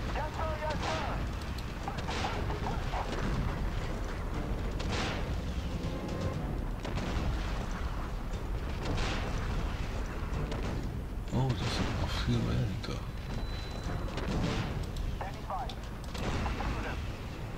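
Tank guns fire in sharp bursts.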